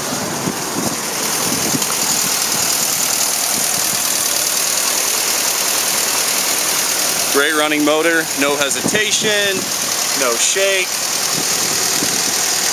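A four-cylinder jeep engine idles under an open hood.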